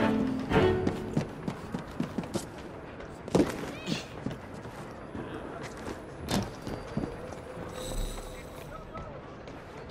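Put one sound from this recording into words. Footsteps thud and clatter quickly on a roof.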